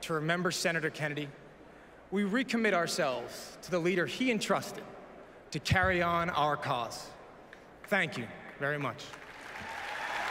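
A young man speaks calmly into a microphone in a large echoing hall.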